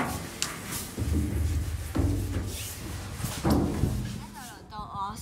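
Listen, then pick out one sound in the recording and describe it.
A girl slides down a metal tube slide with a rumbling rush.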